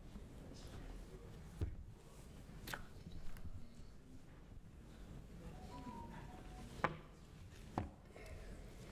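Small knocks and clicks come from a microphone being handled.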